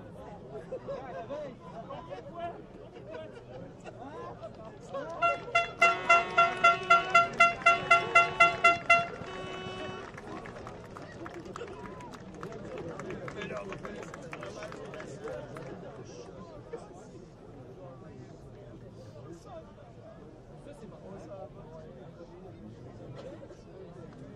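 A small crowd of men and women murmurs and calls out in the distance outdoors.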